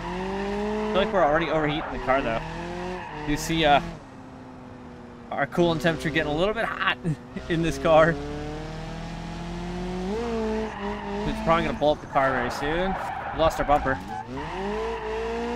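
Tyres screech in bursts as a car slides.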